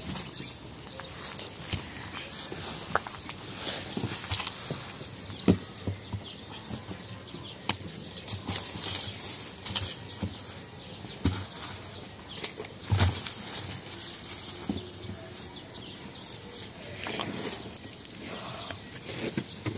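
A wood fire crackles inside a kiln.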